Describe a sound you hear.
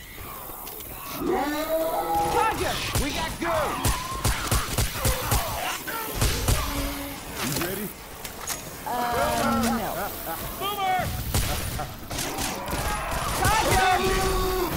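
A shotgun fires repeatedly in loud, sharp blasts.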